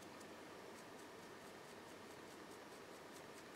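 A paintbrush dabs and scratches softly against a small object.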